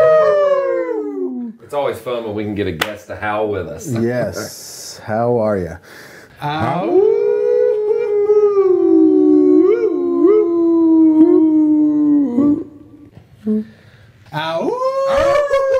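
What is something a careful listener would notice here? A man laughs heartily into a microphone.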